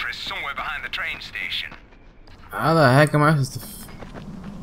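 A young man talks with animation into a close microphone.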